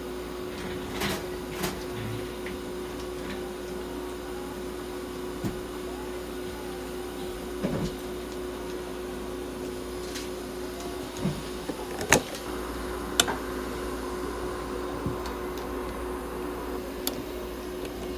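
A bird pecks with sharp, occasional taps.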